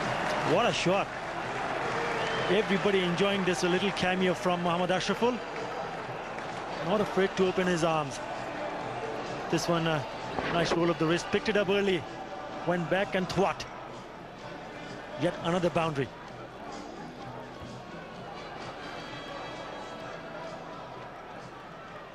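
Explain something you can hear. A large crowd cheers and claps outdoors.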